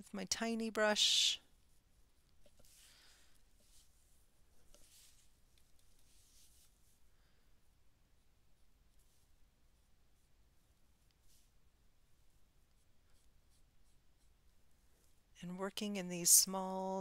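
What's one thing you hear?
A paintbrush brushes softly on paper.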